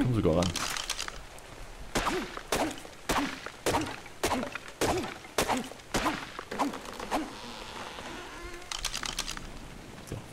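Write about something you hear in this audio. Sharp blows thud repeatedly against wood as a tree is chopped.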